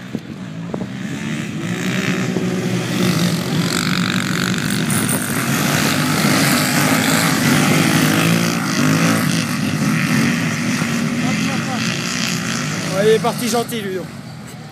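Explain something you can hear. Quad bikes roar away together, engines rising loudly and passing close by.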